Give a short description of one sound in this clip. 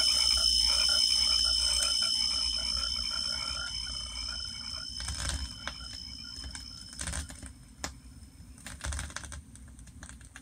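A vinyl record crackles and pops as it spins.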